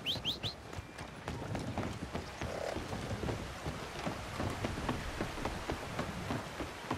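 Boots thud quickly on a wooden bridge as a man runs.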